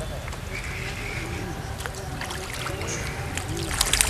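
A fishing reel whirs as the line is wound in.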